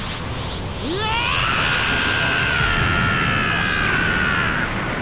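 A powerful blast roars as debris scatters.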